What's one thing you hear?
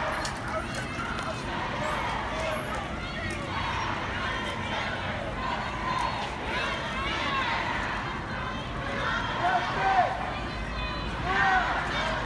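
A large crowd of marchers chants and shouts outdoors.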